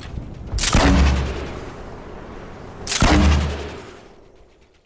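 Gunshots fire loudly in a video game.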